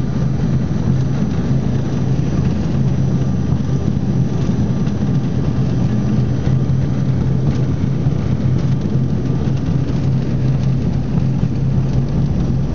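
Aircraft wheels rumble along a runway.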